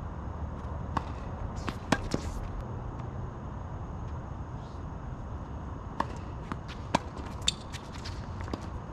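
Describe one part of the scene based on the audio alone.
Tennis balls are struck by rackets with sharp pops outdoors.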